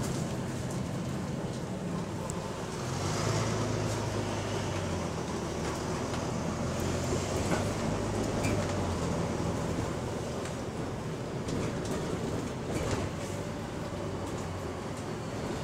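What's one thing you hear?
Fittings inside a moving bus rattle and click.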